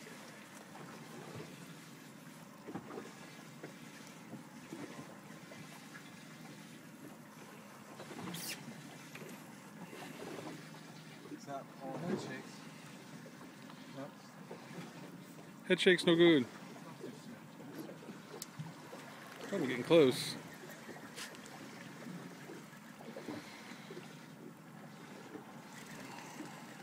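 Water laps gently against the side of a boat.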